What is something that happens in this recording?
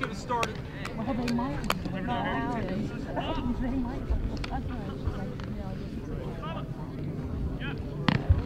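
Young men call out and chatter across an open field.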